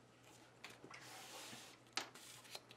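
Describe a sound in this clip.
Paper pages rustle as a book is handled.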